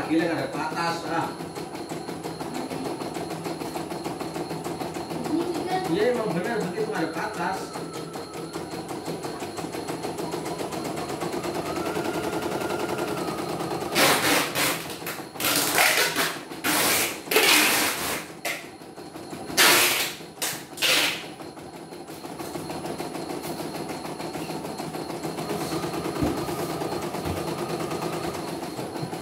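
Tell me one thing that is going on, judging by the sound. An embroidery machine stitches with a fast, steady rattle and hum.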